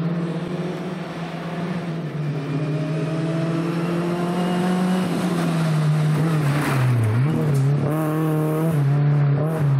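A four-cylinder rally car accelerates hard on a gravel road and passes close by.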